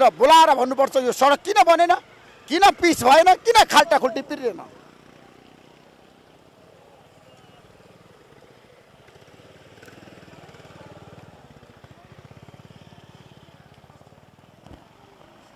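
Motorcycle engines rumble past.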